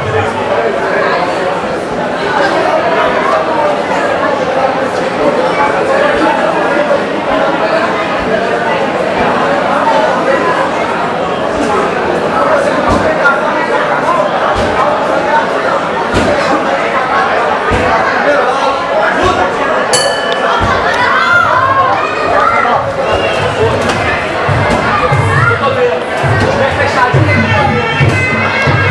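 A crowd chatters and cheers in a hall.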